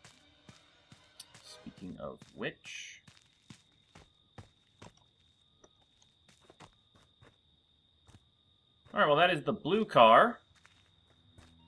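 Footsteps rustle through dry leaves and twigs on a forest floor.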